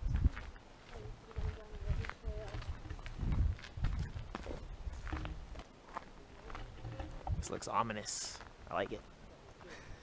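A young man speaks briefly close by.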